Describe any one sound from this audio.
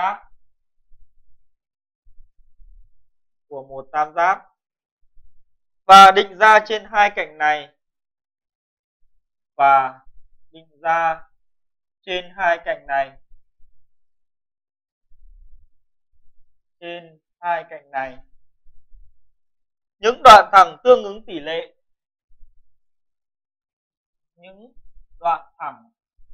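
A man speaks calmly in short phrases, close by.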